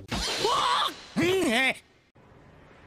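A young man shouts loudly and excitedly.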